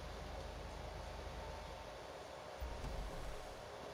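A car door opens with a clunk.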